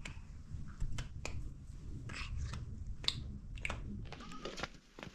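A young woman speaks softly to a small child close by.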